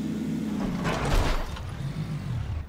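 A vehicle crashes into a rock with a loud thud.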